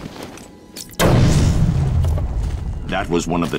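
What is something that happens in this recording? An explosion booms loudly and rumbles.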